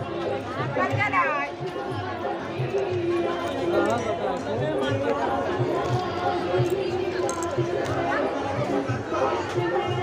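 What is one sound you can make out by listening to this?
A crowd of women and men chatter and call out loudly nearby.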